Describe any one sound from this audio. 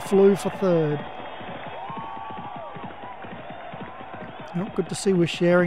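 Horses gallop with rapid drumming hoofbeats.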